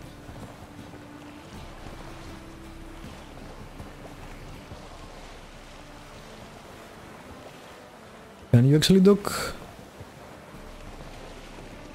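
Water splashes steadily against a small sailing boat.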